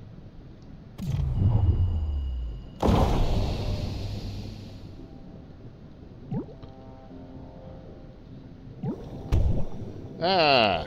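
A harpoon gun fires underwater with a sharp burst.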